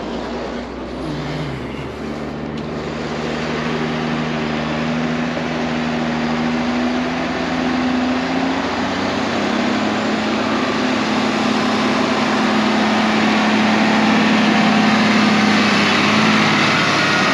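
Tractor engines rumble and grow louder nearby.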